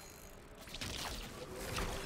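A glowing energy blast whooshes and crackles.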